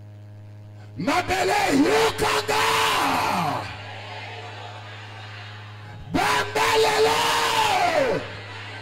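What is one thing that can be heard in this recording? A man shouts fervently into a microphone, heard through loudspeakers.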